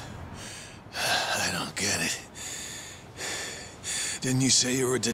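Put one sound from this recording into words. A man asks a question in a rough voice.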